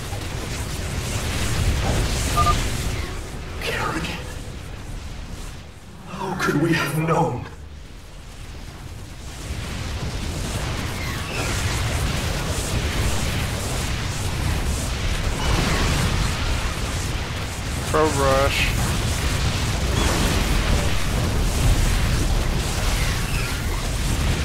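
Laser blasts and explosions crackle in a video game battle.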